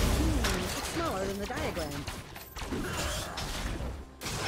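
Game combat effects clash and crackle.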